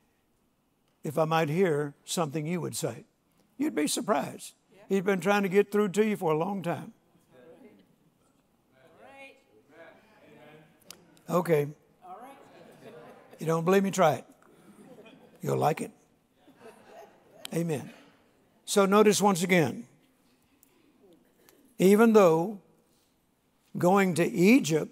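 An elderly man speaks slowly and with emphasis through a microphone in a large hall.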